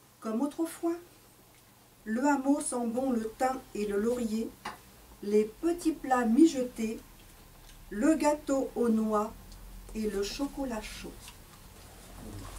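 A middle-aged woman speaks calmly, reading out.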